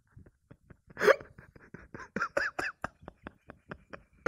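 A young man laughs into his hands close to a microphone.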